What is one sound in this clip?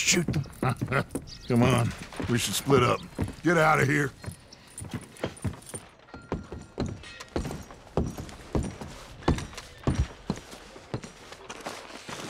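Boots thud on wooden boards.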